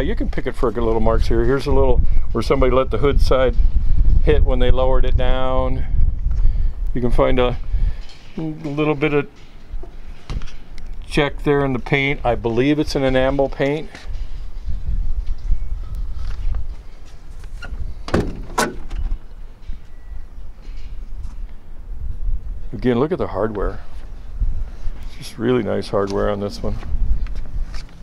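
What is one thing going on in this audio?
An older man speaks calmly and close by.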